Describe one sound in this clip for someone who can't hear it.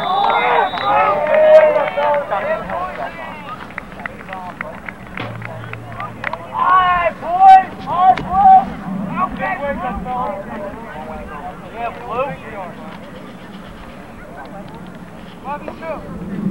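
Young players shout and cheer outdoors.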